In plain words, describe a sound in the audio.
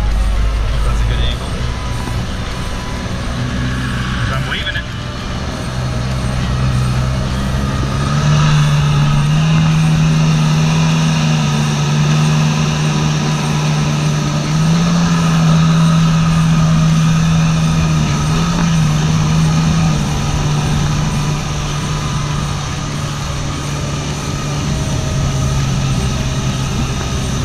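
Water sprays and churns behind a speeding jet ski.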